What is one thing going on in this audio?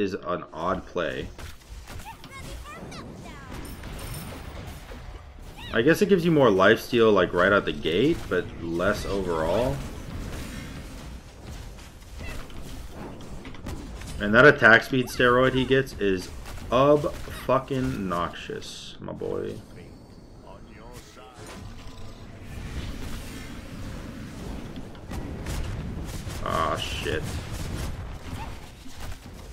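Spell effects whoosh and crackle in a video game.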